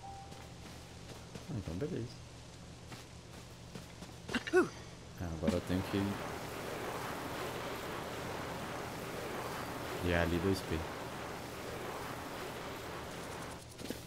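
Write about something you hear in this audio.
Footsteps patter quickly over grass.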